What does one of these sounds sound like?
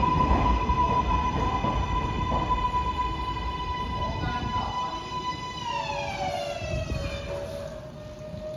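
A subway train's motor whines steadily, then winds down as the train comes to a stop.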